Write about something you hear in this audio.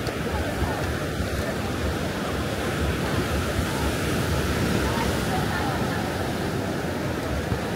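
Waves wash onto the shore in the distance.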